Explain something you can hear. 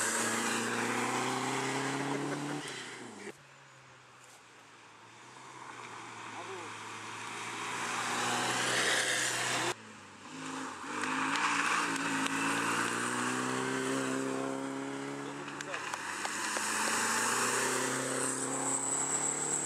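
Rally car engines roar loudly, revving up and down as cars speed past through a bend.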